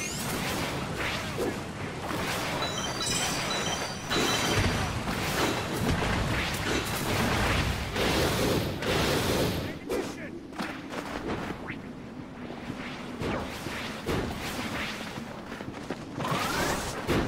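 Energy blasts whoosh and crackle in quick bursts.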